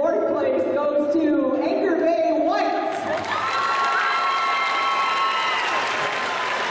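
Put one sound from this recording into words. A crowd of girls chatters and cheers in a large echoing hall.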